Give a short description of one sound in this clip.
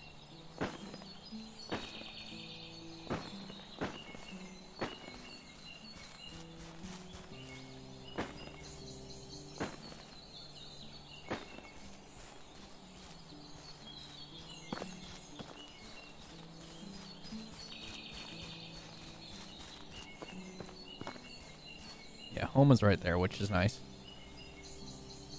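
Footsteps crunch over leaves and undergrowth.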